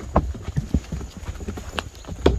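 A horse's hooves knock on wooden planks.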